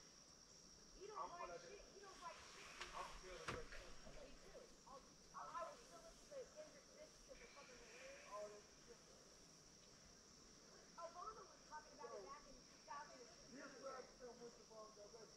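A young woman talks quietly nearby.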